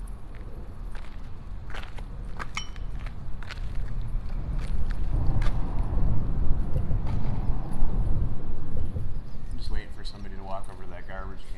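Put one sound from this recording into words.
Wind blows across the microphone outdoors, gusting louder for a while.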